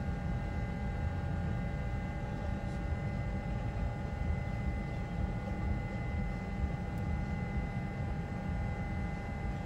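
A stationary tram hums steadily close by.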